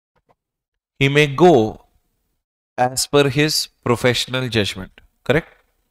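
A man lectures into a close microphone with animation.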